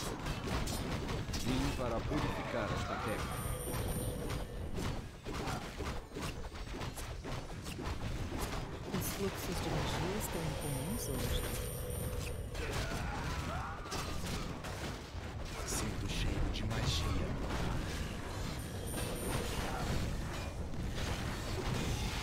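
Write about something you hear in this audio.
Game battle sounds of clashing weapons and spell blasts play throughout.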